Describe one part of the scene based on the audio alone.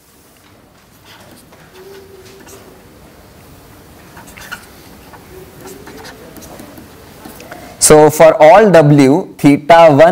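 A pen scratches and taps on a writing board.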